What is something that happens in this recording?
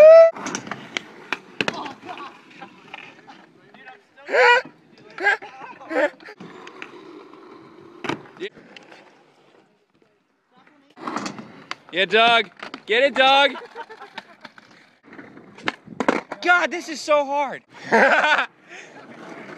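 A skateboard clatters and slaps on concrete.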